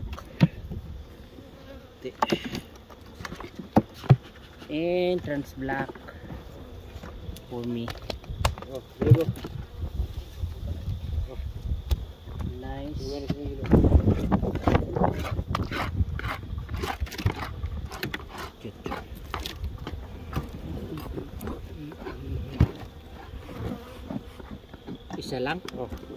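Wooden hive boxes knock and clatter.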